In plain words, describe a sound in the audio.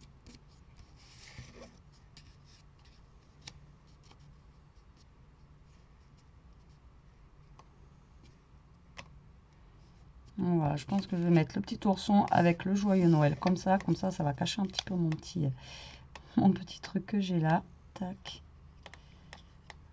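Paper rustles and crinkles softly under hands.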